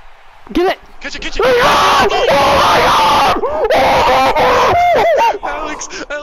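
A large crowd roars and cheers loudly in a stadium.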